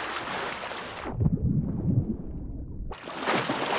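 Water rumbles dully and muffled when heard from underwater.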